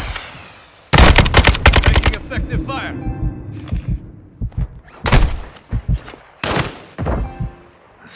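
Rapid gunfire rattles in close bursts.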